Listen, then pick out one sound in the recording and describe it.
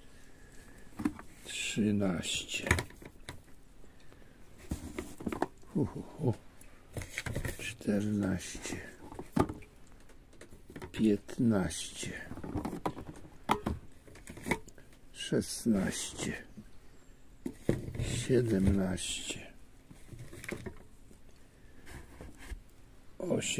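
A cardboard box rustles.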